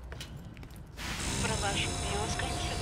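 A computer terminal hums and beeps.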